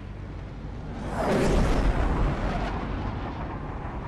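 A loud whoosh swells and fades.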